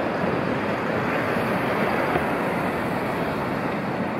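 A bus drives past on the street.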